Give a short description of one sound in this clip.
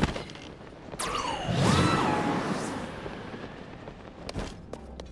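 Wind rushes past during a glide and slowly fades.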